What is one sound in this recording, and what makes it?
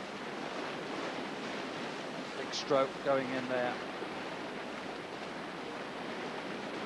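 Whitewater rushes and churns loudly.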